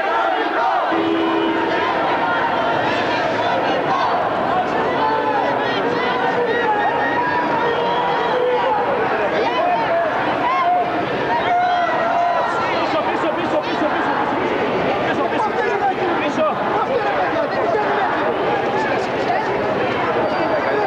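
A large crowd of marchers chatters and talks loudly all around outdoors.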